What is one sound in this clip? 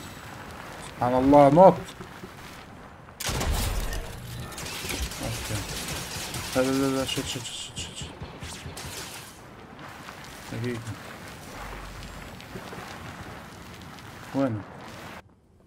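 A young man speaks in short bursts into a headset microphone.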